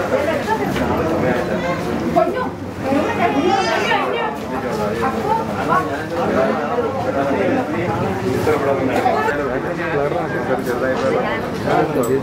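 A young woman talks and smiles with people around her.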